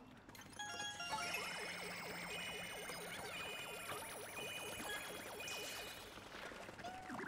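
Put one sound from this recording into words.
Bright chiming tones ring and sparkle.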